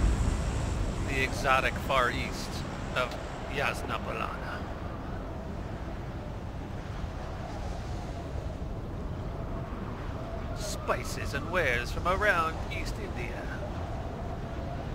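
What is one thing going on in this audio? Wind rushes loudly and steadily past a falling skydiver.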